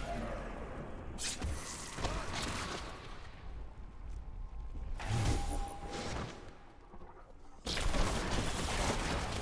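Weapons clash and slash in a fast fight.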